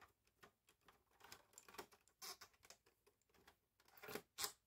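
A screwdriver squeaks and scrapes as it turns a screw.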